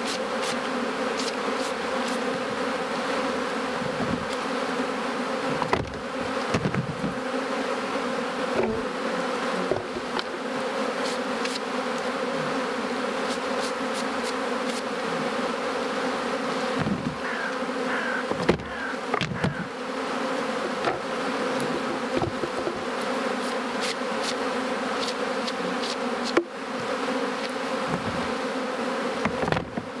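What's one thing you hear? Bees buzz in a steady, dense hum all around.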